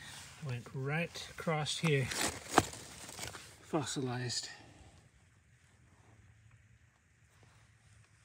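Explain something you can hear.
Fingers brush and scrape against rough rock.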